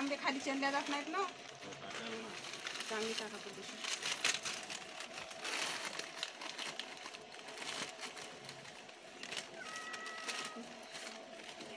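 Plastic sheets rustle and crinkle as they are handled.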